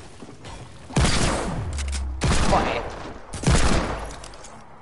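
Gunshots bang several times at close range.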